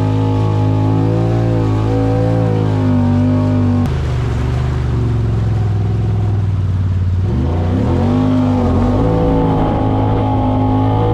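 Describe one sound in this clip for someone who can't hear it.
A boat engine drones loudly and revs up and down.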